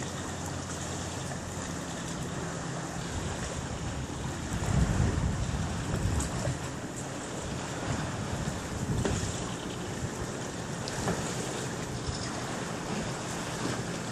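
Wind gusts outdoors and rustles the leaves of trees.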